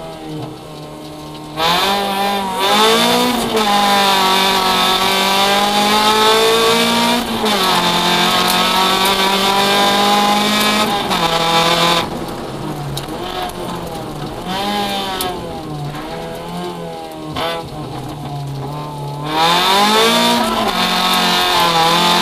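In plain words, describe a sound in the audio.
A car engine roars loudly, revving up and down through the gears.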